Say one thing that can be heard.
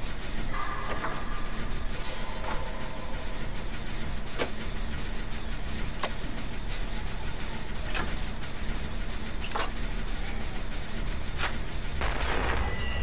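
A machine rattles and clanks steadily as it is worked on.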